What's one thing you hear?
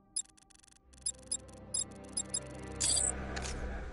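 Short electronic clicks sound as a menu is browsed.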